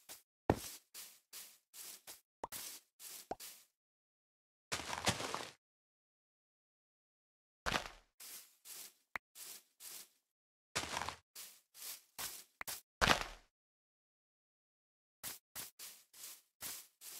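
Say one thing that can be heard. Footsteps crunch rhythmically through grass.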